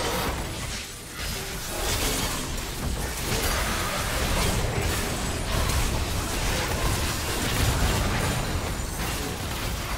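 Game spells and attacks crackle and burst in a fast fight.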